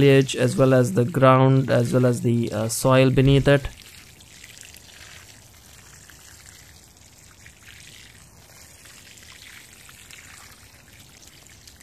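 Water pours from a watering can and patters softly onto soil.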